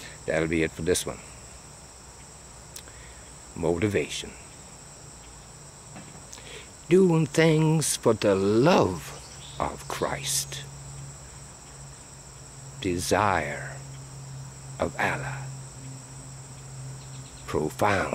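An older man speaks close by in short, animated bursts with pauses.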